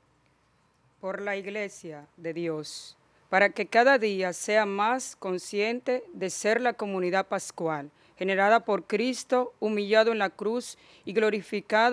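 A young woman reads out calmly into a microphone, heard through a loudspeaker in an echoing room.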